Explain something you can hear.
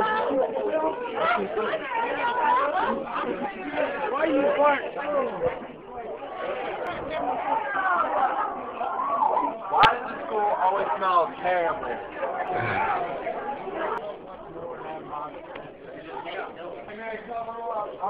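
A crowd of young people chatter and shout close by in an echoing hallway.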